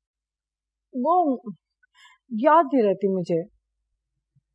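An older woman speaks calmly and close by.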